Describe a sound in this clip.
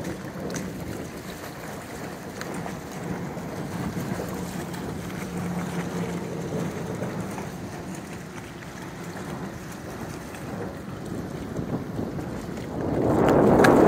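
Dogs wade and splash through shallow water.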